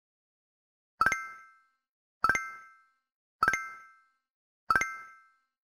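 A bright chime rings as each letter tile is picked.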